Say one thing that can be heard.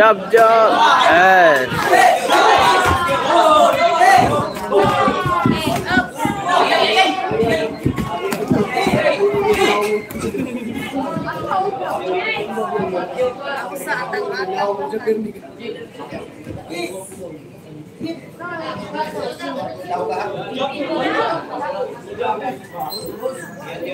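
Boxing gloves thud against headgear and body during sparring.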